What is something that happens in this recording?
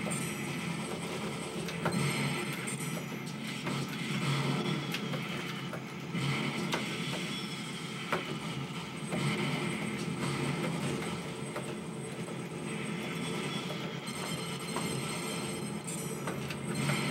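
An arcade game plays loud gunfire and explosion sound effects.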